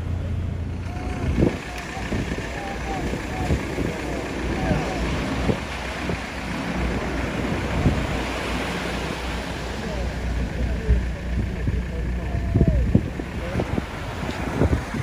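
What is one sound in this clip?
Waves break and wash up onto a beach.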